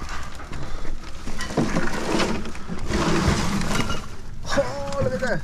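Leafy branches rustle and scrape as they are pushed into a bin.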